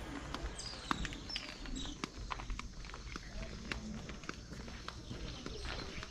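Footsteps knock on a wooden walkway.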